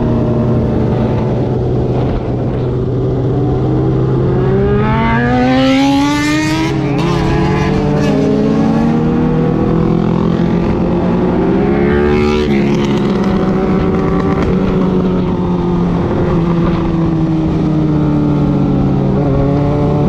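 A motorcycle engine hums close by and rises and falls in pitch as it speeds up and shifts gears.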